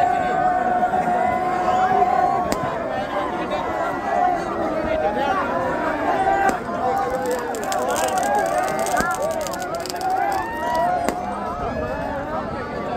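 Fireworks pop and crackle.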